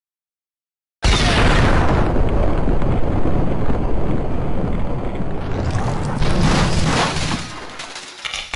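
Debris clatters and crashes down.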